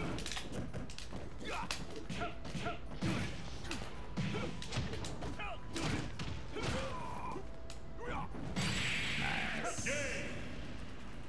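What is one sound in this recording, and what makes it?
Game punches and hits thud and crack in quick bursts.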